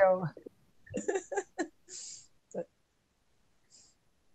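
A middle-aged woman laughs over an online call.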